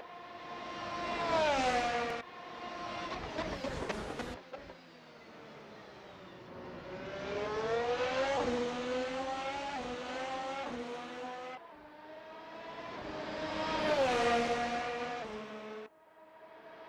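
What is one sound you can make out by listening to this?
A racing car engine screams, rising and falling in pitch as it speeds up and shifts gears.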